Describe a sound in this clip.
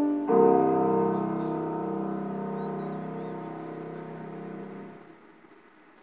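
A sustained musical chord plays through loudspeakers in a hall and slowly fades away.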